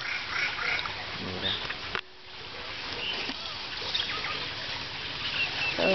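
Water splashes and ripples as an animal surfaces.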